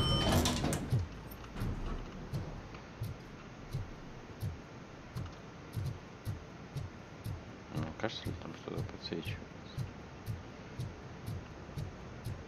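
Footsteps tap steadily on a hard, smooth floor.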